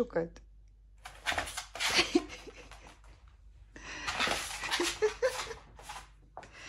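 A dog's claws patter on a hard floor.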